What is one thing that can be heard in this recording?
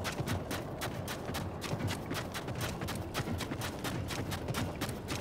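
Quick footsteps run through soft sand.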